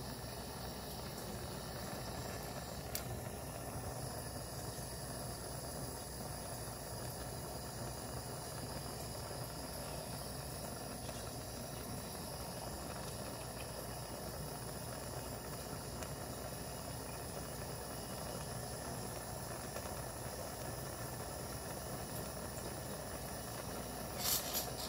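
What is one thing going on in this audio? A gas torch roars steadily close by.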